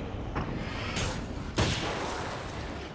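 Gunshots crack in quick succession.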